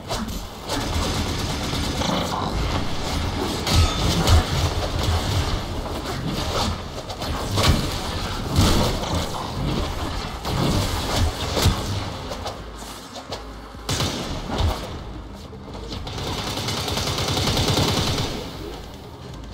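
Gunfire and blade strikes crackle and clash in a video game.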